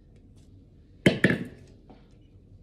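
A metal mixing bowl clanks against a stand mixer.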